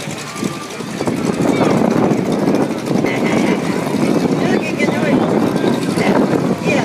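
A crowd of spectators chatters nearby outdoors.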